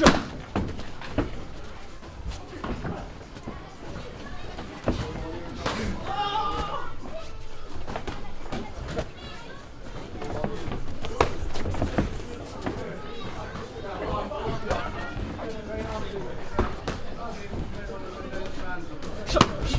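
Padded gloves thud against pads in sharp bursts.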